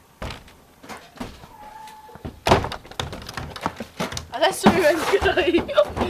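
A wooden door bangs and creaks as it swings.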